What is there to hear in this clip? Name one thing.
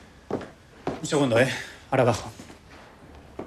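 A man speaks with animation.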